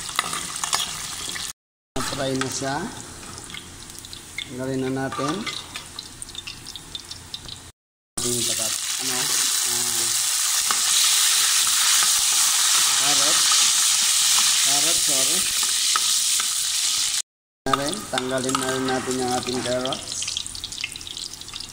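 Oil sizzles and bubbles in a pan.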